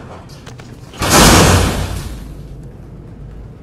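A heavy stone block crashes down with a loud rumbling thud.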